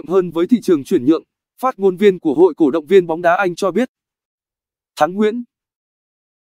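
A young man speaks calmly and clearly through a microphone.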